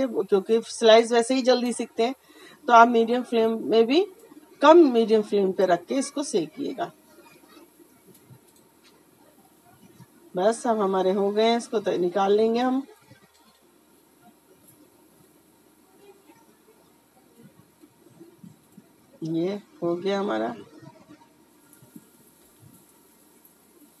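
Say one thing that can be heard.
Oil sizzles softly in a frying pan.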